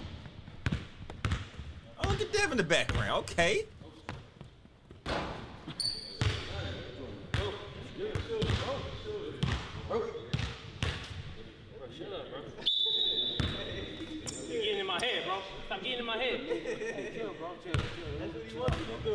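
A basketball bounces on a hard court with sharp thuds.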